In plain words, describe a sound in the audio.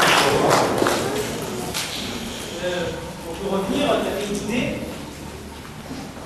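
An audience murmurs and chatters quietly.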